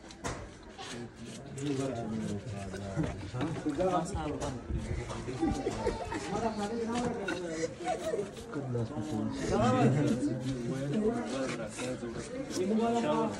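A knife slices through hide and flesh.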